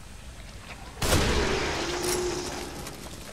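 A rifle fires a single loud shot that echoes briefly.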